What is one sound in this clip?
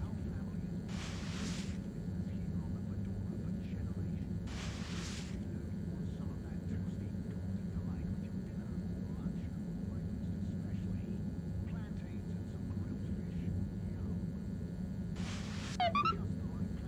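A cloth scrubs against a wall in short bursts.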